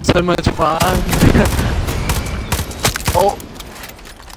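Gunfire and explosions boom loudly.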